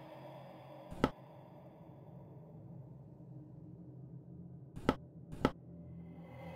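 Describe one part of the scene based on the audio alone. Short sharp clicks sound as puzzle tiles are selected.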